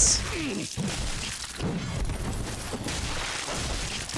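Swords clash and clang in a game fight.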